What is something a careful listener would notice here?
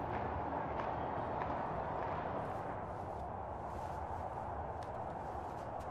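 Footsteps shuffle softly across a hard floor.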